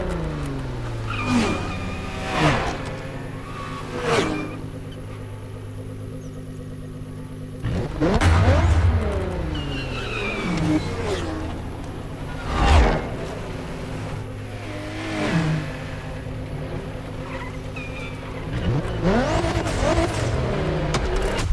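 Race cars roar past at speed, one after another.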